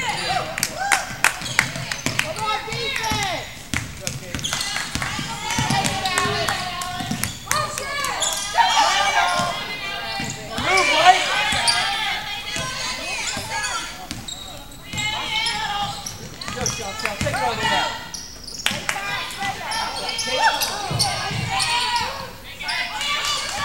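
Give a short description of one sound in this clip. Spectators shout and cheer.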